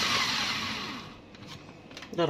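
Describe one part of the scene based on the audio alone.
A small electric blender whirs and winds down.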